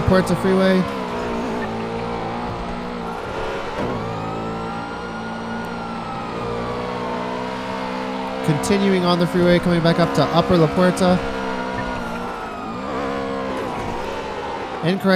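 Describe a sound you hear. A police siren wails in a slow rise and fall.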